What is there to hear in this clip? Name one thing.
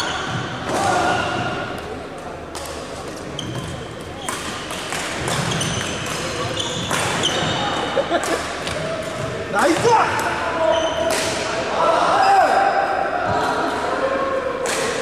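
Badminton rackets smack a shuttlecock in a large echoing hall.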